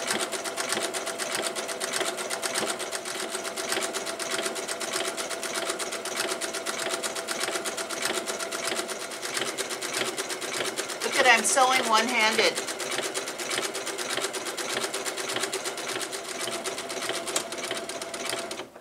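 A sewing machine runs with a fast, steady whirring stitch.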